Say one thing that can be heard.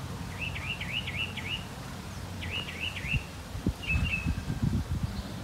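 A small bird chirps in short, repeated trills.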